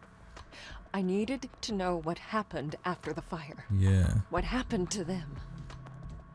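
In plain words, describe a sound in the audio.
A young woman speaks quietly and earnestly.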